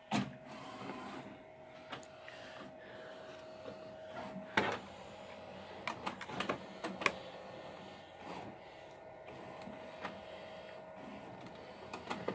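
A printer hums steadily with a faint whine.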